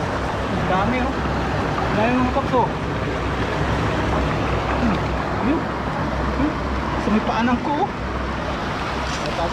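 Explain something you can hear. Shallow water gurgles and splashes.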